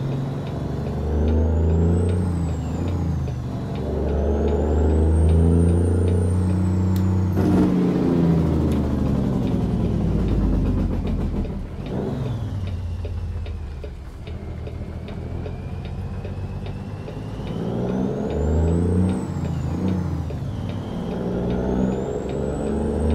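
A truck's diesel engine rumbles and revs up and down through the gears.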